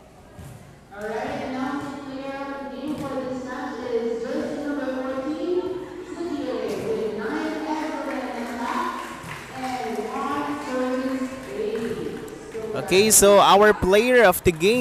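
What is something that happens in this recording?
Young women chant and cheer together loudly in an echoing hall.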